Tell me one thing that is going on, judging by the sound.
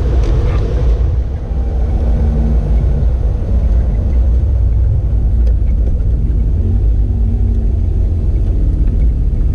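Tyres roll and hum on the road.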